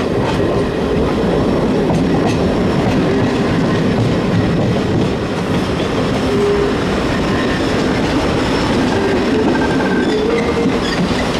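A train rumbles past close by on the tracks.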